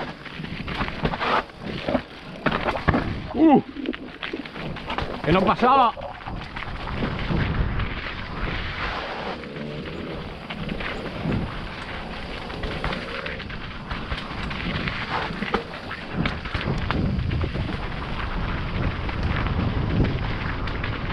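Bicycle tyres crunch and rumble over rocks and dirt.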